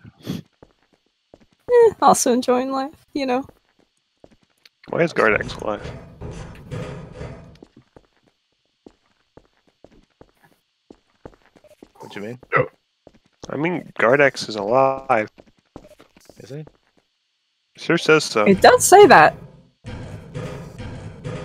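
Footsteps tap steadily on hard floors and metal rungs.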